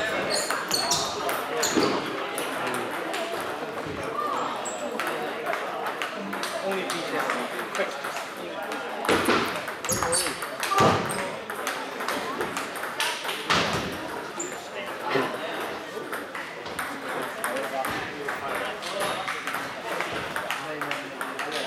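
Ping-pong balls click rapidly on paddles and tables in a large echoing hall.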